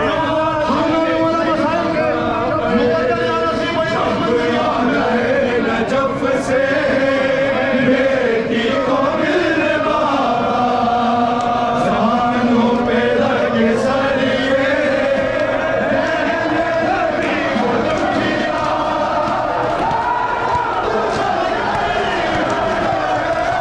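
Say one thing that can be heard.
A large crowd of men chants along in unison.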